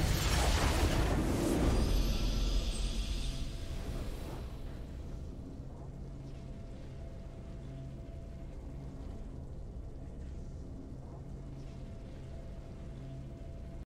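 Low game music hums steadily.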